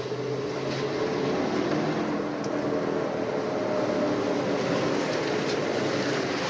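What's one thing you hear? A car engine hums as the car approaches.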